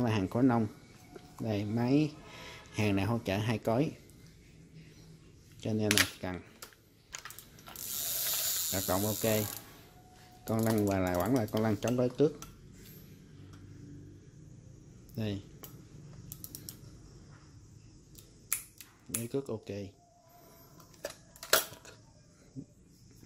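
Plastic reel parts click and clack as they are handled.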